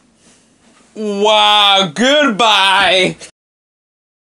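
A man shouts loudly with animation close by.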